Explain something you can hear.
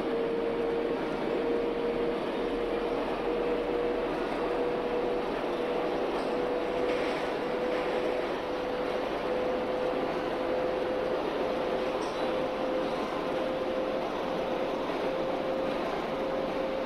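Train wheels rumble and clatter on the track.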